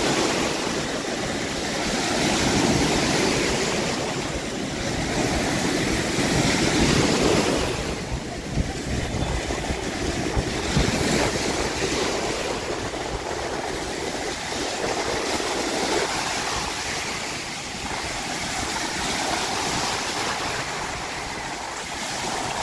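Water splashes around people wading.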